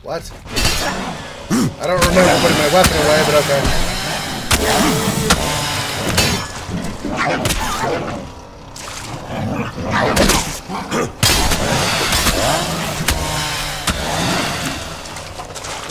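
Sword blades slash and strike in a fight.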